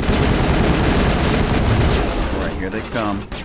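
Gunfire blasts loudly and rapidly.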